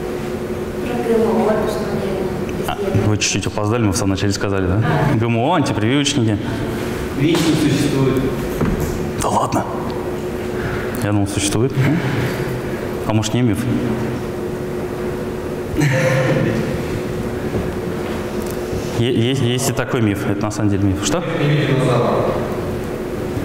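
A woman speaks calmly through a microphone, echoing in a large hall.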